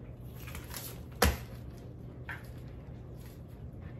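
Plastic packaging crinkles.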